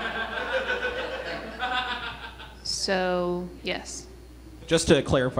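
A young woman speaks with feeling into a microphone in a large hall.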